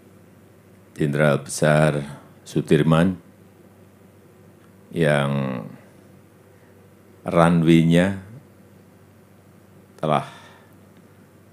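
A middle-aged man speaks calmly into a microphone outdoors, with pauses between phrases.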